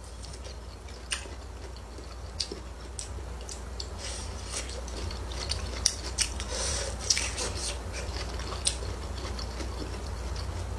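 A young woman bites and crunches vegetables, close up.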